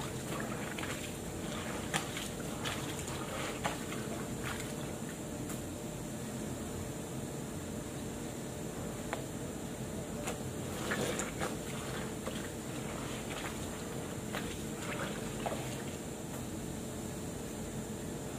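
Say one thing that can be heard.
Wet clothes rustle and splash as they are scrubbed by hand.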